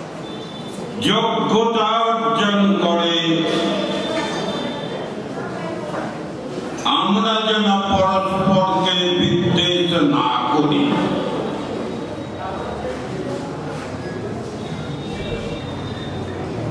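An elderly man speaks with feeling into a microphone, heard through loudspeakers.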